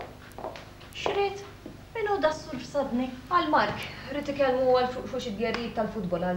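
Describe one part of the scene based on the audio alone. A young woman speaks with animation nearby.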